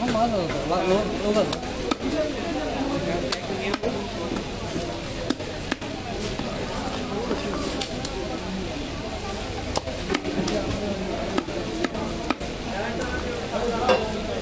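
A knife chops and scrapes fish on a wooden block.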